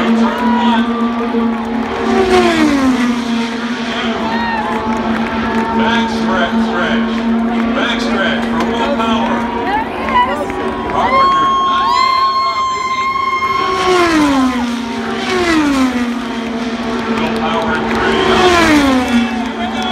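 Racing engines whine loudly as cars speed past, dropping in pitch one after another.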